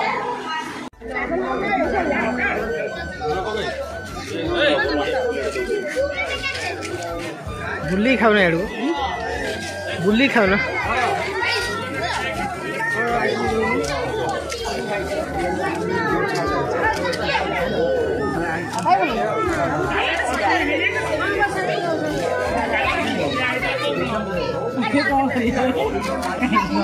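A crowd of women chatter and talk over each other close by.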